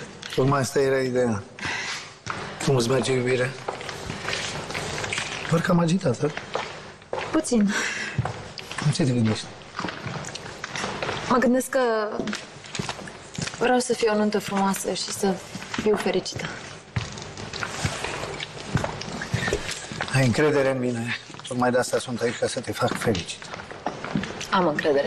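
A middle-aged man speaks calmly, close by.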